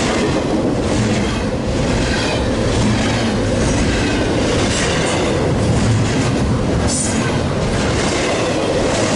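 A freight train rumbles loudly past close by.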